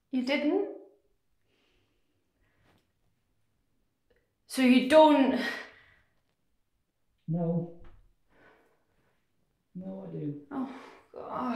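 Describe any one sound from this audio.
A young woman speaks close by with feeling, in short bursts and pauses.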